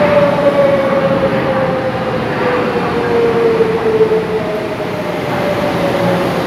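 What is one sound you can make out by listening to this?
A train's motor hums with a slowly falling whine.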